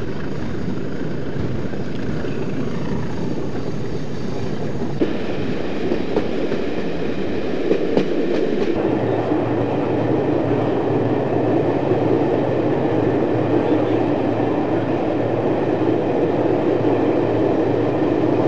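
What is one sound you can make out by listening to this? Train wheels clatter and roar over the rails.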